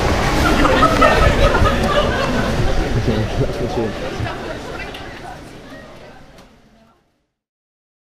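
A crowd of people chatters loudly, then fades away.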